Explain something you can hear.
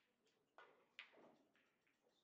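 Pool balls clack against each other.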